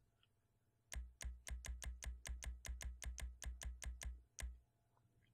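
Soft electronic clicks tick quickly, one after another.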